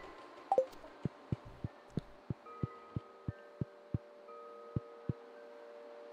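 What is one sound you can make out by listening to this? Soft footsteps tap on a wooden floor at a steady pace.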